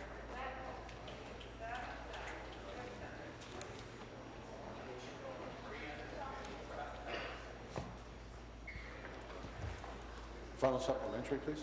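Many people murmur and chatter quietly in a large echoing chamber.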